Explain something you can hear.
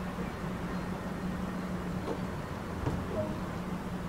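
A train door slides shut with a thud.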